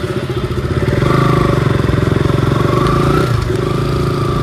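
A motorcycle engine revs up briefly.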